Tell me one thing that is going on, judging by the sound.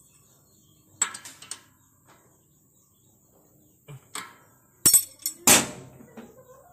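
A metal wrench clinks and knocks against an engine.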